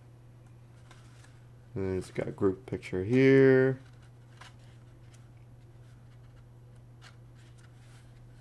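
Stiff paper pages turn and rustle close by.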